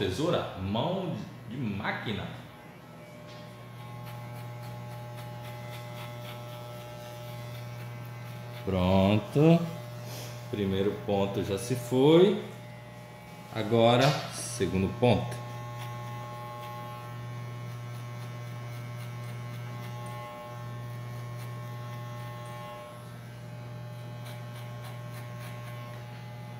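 Hair clippers buzz steadily.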